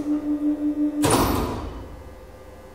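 Elevator doors slide open with a thud.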